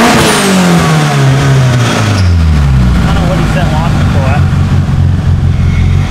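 A car engine revs loudly and then drops to a deep, rumbling idle.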